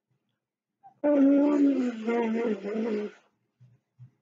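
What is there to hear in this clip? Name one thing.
A woman blows her nose into a tissue.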